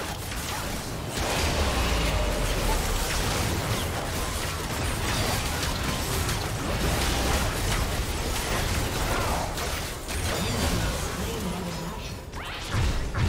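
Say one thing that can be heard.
Game spell effects burst and clash in a busy fight.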